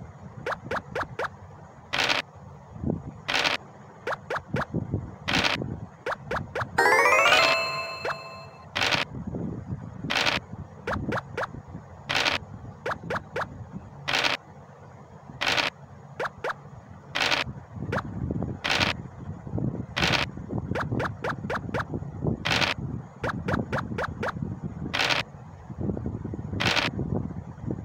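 Game pieces tap as they hop across the board.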